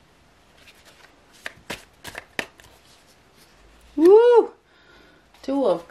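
A playing card is laid down with a soft tap.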